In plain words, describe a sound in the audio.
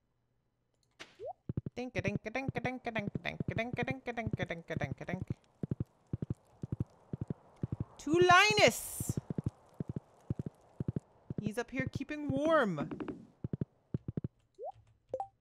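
Horse hooves clop quickly along a path.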